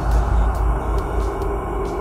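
A young man gasps in alarm.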